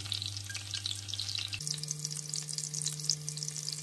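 Chopsticks beat eggs briskly against a dish.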